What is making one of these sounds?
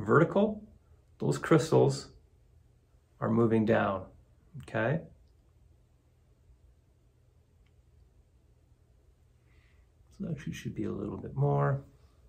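A man speaks calmly and close by, pausing between phrases.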